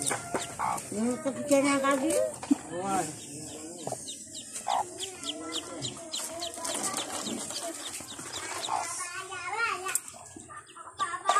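Ducklings peep in high, quick chirps.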